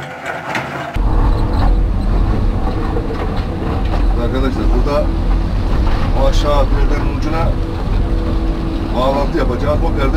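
An excavator engine roars loudly and close, heard from inside the cab.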